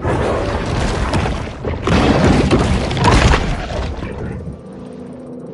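A large fish thrashes and tears at prey underwater.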